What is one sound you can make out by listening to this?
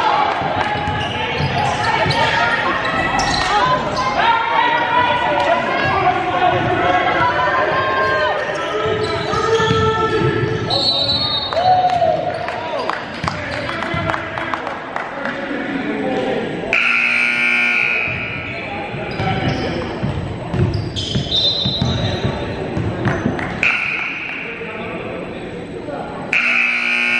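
Young players and spectators call out and chatter in the echoing gym.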